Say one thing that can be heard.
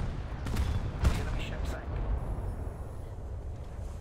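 Shells explode and splash into water.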